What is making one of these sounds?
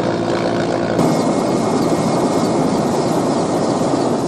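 Jets of water hiss onto flames.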